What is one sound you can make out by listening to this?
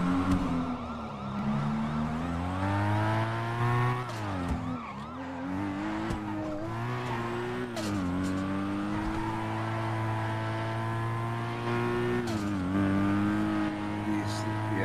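A sports car engine revs hard, rising and dropping as gears shift.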